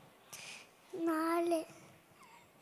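A little girl speaks in a high voice.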